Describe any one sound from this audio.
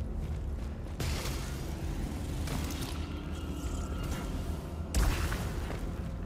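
A gun fires a loud burst.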